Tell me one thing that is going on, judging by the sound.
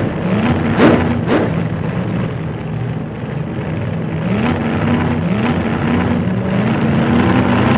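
A motorcycle engine hums close by, its pitch stepping up and down.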